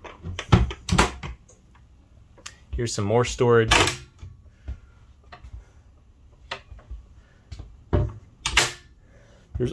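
A cabinet door latch clicks.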